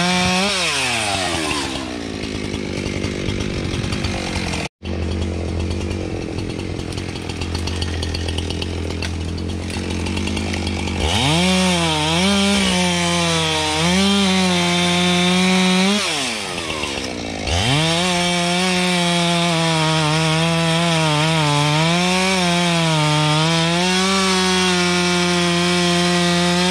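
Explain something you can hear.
A chainsaw engine roars close by, revving up and down as it cuts through wood.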